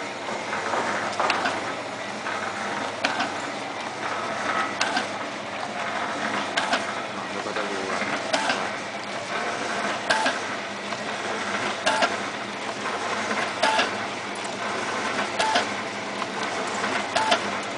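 A vertical sachet packing machine runs with a mechanical whir.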